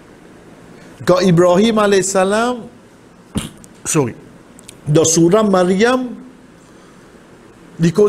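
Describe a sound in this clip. A man speaks with animation into a nearby microphone, in short bursts.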